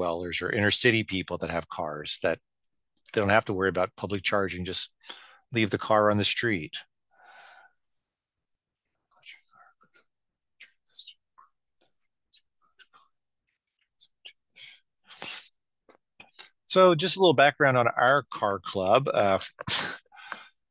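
A middle-aged man speaks calmly into a headset microphone, heard as if over an online call.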